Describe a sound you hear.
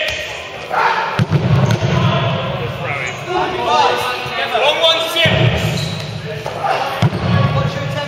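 A ball thuds against the floor and players.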